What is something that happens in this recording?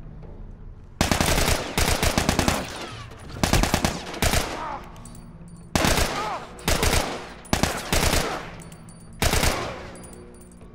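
Rifle fire rattles in loud bursts, echoing through a large indoor space.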